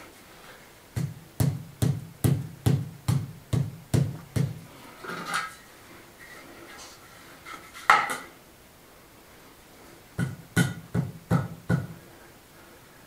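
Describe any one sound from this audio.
A rubber mallet taps rapidly on floor tiles.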